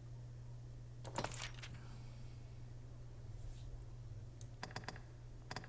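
A young man speaks briefly and calmly close to a microphone.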